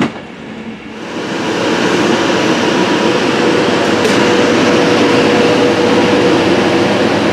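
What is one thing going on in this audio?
An electric train hums steadily as it pulls along a platform.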